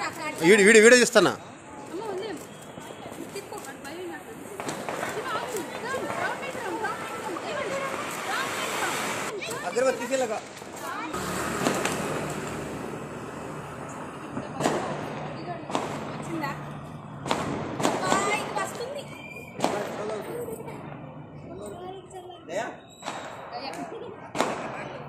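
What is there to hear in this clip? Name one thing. Women chatter and laugh close by.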